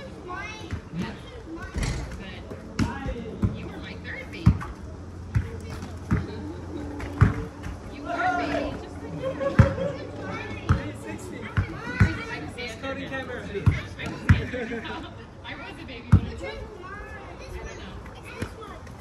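Sneakers squeak on a sport court.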